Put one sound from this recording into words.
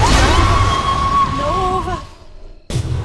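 A magical spell bursts with a crackling whoosh.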